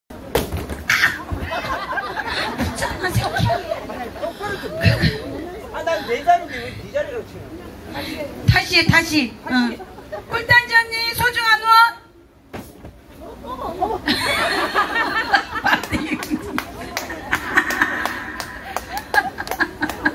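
Several women sing and shout loudly with animation outdoors.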